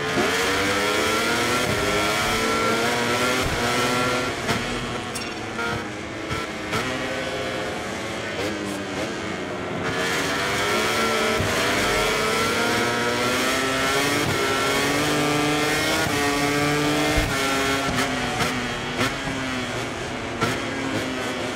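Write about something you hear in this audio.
A motorcycle engine revs high, rising and falling in pitch as gears shift.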